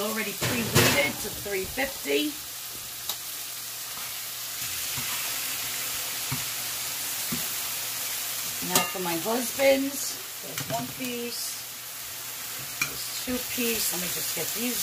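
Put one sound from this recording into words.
Chicken sizzles steadily in a hot pan.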